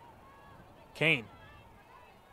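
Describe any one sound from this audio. A referee's whistle blows once, short and sharp.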